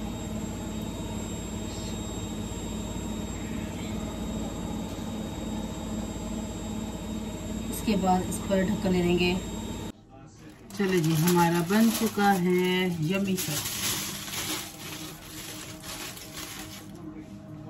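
Bread sizzles softly in a hot frying pan.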